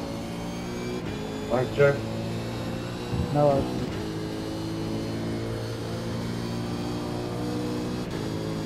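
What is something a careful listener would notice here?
A racing car engine drones steadily at high revs.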